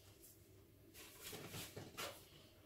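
A loose wooden board scrapes and bumps as it is shifted.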